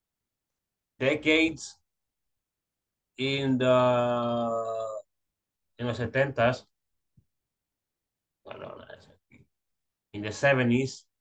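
A young man speaks calmly over an online call, in short phrases with pauses.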